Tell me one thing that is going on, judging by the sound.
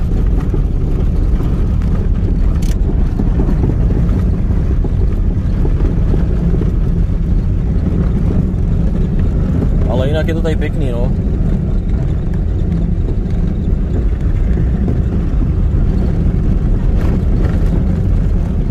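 A car engine rumbles steadily from inside the car.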